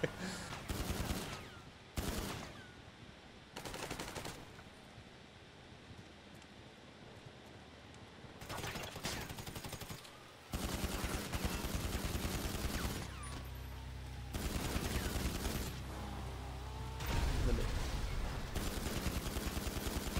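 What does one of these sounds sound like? A pistol fires single shots.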